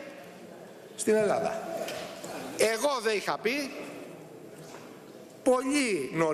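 A middle-aged man speaks forcefully into a microphone in a large echoing hall.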